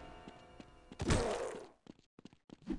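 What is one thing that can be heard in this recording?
An axe strikes a zombie with a heavy thud.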